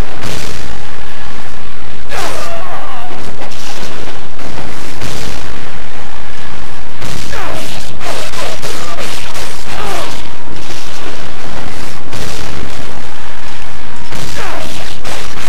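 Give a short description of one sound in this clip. Blasts boom and burst loudly.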